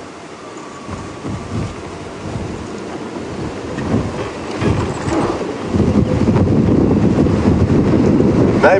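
A vehicle engine rumbles as it drives over rough ground.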